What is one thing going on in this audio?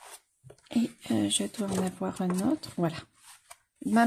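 Pages riffle quickly as a book is flipped through.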